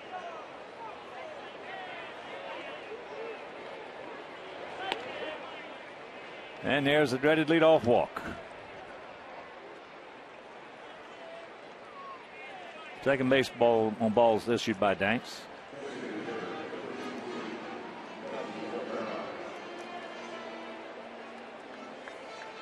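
A crowd murmurs in a large outdoor stadium.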